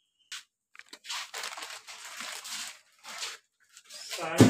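Plastic and cardboard rustle as items are handled.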